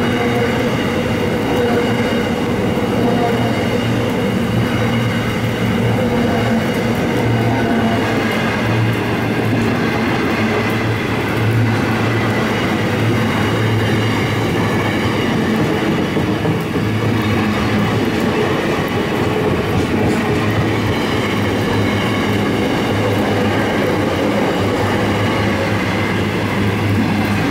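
The wheels of a container freight train rumble and clatter along the rails as the wagons roll past.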